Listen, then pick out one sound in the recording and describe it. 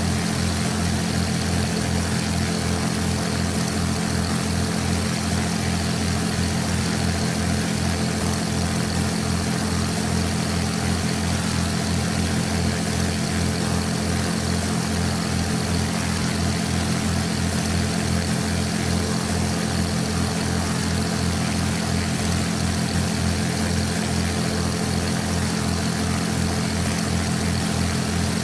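A propeller plane's engine drones steadily and evenly.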